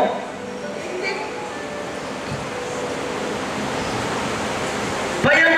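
A man speaks into a microphone, heard through loudspeakers in a reverberant room.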